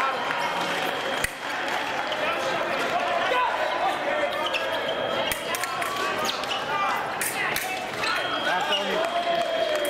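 Fencing blades clash and clink sharply.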